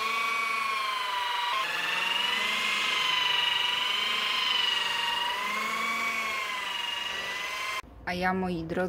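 A power polisher whirs steadily, its pitch gently wavering.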